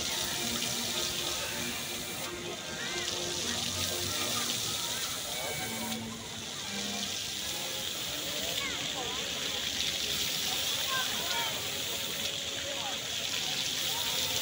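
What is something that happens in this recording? Fountain jets splash and spray water steadily outdoors.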